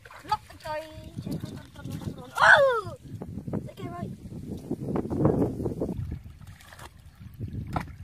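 Hands scoop and splash in shallow muddy water.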